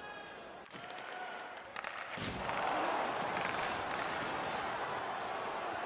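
Hockey skates scrape across the ice.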